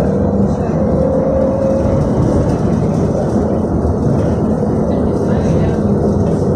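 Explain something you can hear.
Tyres roll on the road beneath a moving vehicle.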